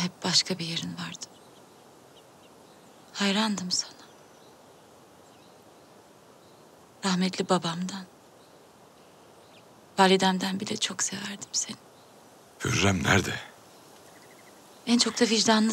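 A young woman speaks softly and with emotion, close by.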